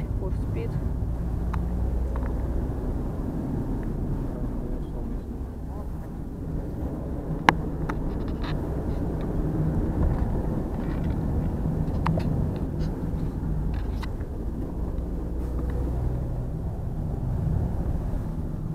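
A car engine hums steadily from inside.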